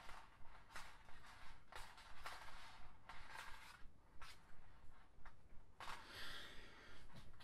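Plastic cords rustle and squeak as fingers weave them.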